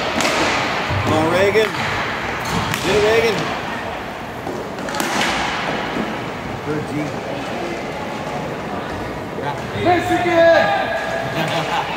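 Young players shout across a large echoing rink.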